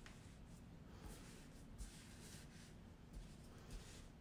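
Hands pat and smooth yarn flat on a table.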